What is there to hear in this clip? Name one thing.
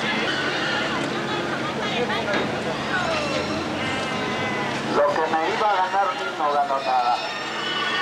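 Men and women talk and call out nearby outdoors.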